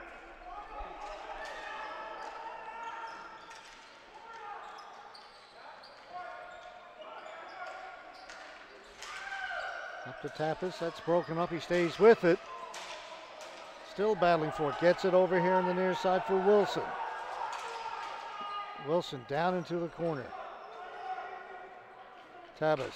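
Hockey sticks clack against a ball in an echoing arena.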